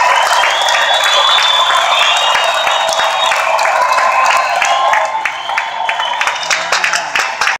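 A large crowd screams and cheers loudly in a big echoing arena.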